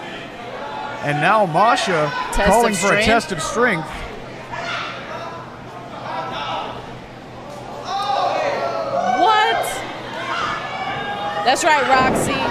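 A young woman shouts taunts nearby in a large echoing hall.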